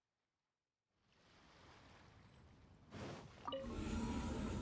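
A swirling portal hums and whooshes.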